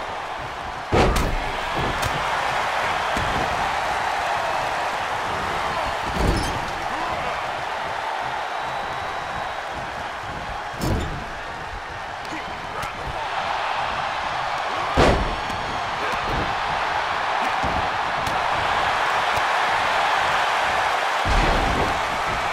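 Heavy bodies slam onto a wrestling ring's canvas with loud thuds.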